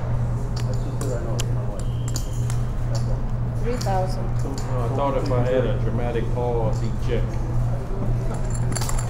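Poker chips click and clack together.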